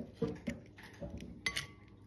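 An eggshell cracks open.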